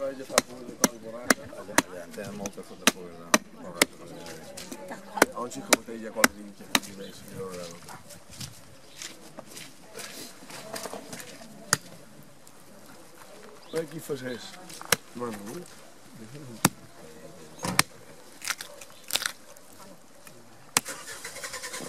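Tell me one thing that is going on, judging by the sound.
A knife chops sharply into meat and bone.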